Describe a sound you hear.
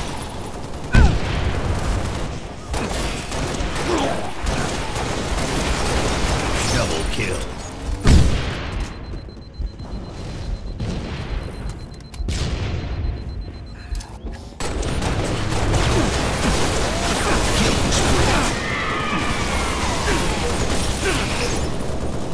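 Gunshots and explosions from a video game sound in bursts.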